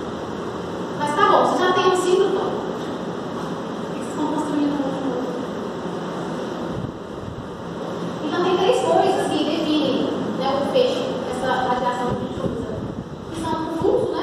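A young woman speaks calmly, with animation, close by.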